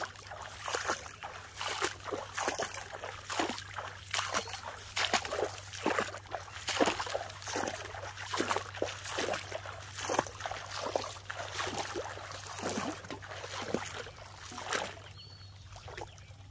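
Water splashes as a man works with his hands in it.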